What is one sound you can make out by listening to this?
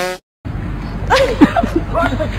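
A young woman laughs brightly close by.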